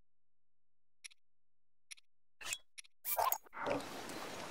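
Short menu clicks and chimes sound.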